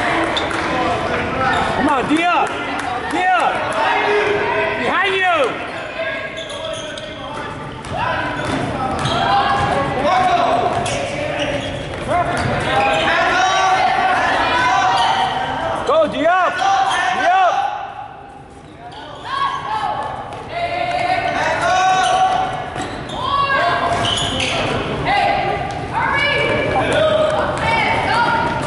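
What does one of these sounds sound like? A crowd of spectators talks and calls out in a large echoing gym.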